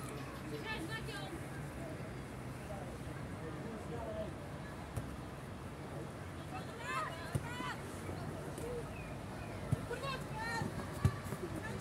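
Young boys shout to each other across an open field.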